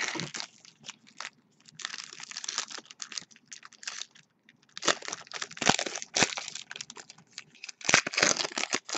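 Foil card packs crinkle and rustle in hands close by.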